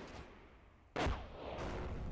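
A sharp blast cracks once.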